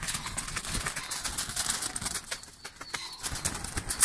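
Birds flap their wings noisily inside a wire cage.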